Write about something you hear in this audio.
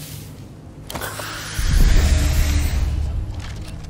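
An inhaler gives a short hiss.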